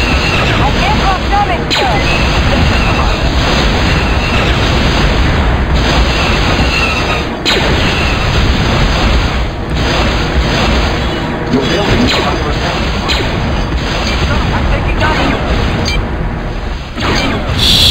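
Laser blasts fire rapidly in a battle.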